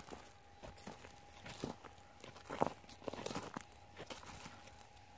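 Dry stalks rustle and crackle underfoot.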